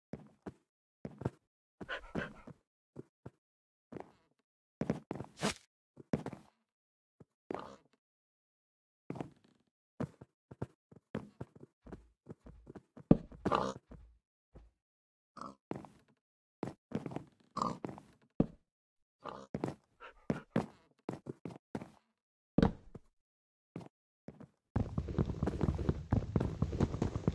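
Pigs grunt and snort nearby.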